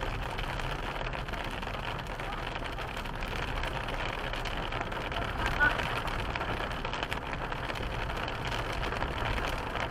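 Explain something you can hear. Rain patters steadily on a car's windscreen.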